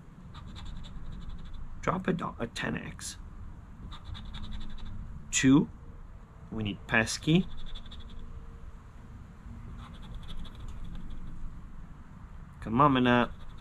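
A coin scratches across a lottery ticket.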